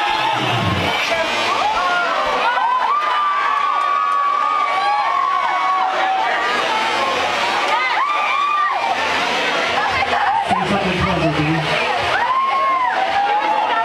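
A crowd talks and shouts loudly close by.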